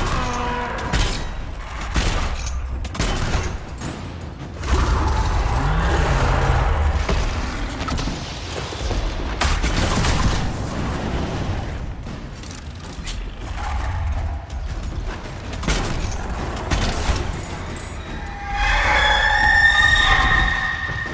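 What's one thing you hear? Weapons clash and strike in quick impacts.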